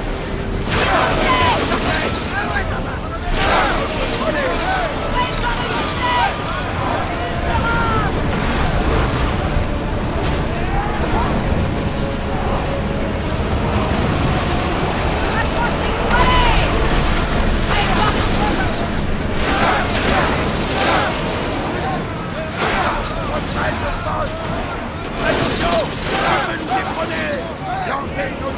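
Waves surge and splash against a wooden ship's hull.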